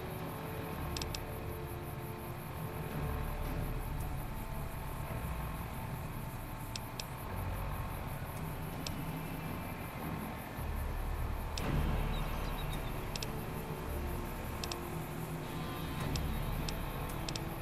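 Soft electronic clicks sound as menu items are selected.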